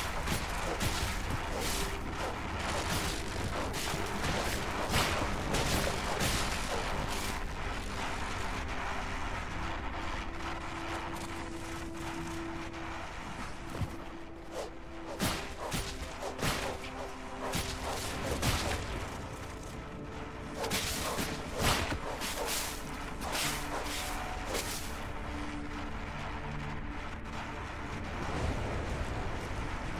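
Game sound effects of lightning strikes crackle and zap repeatedly.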